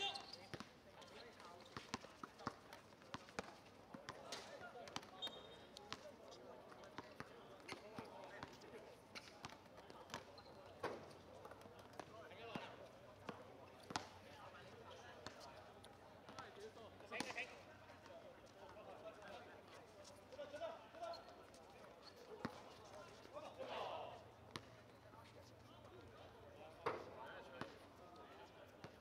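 A football thuds as players kick it on a hard court.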